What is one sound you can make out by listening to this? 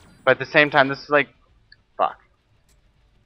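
A young man speaks briefly and loudly into a microphone, close by.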